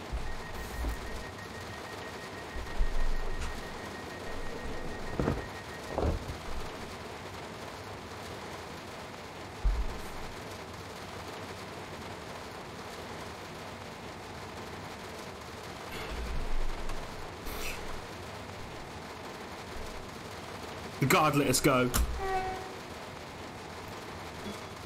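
Windscreen wipers sweep back and forth with dull thumps.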